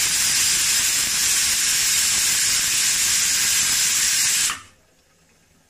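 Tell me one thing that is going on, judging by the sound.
A pressure cooker hisses loudly as steam escapes from the valve.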